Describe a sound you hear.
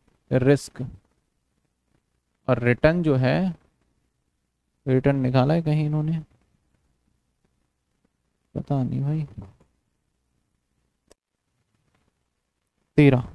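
A man speaks calmly in short phrases through a close microphone, with pauses between them.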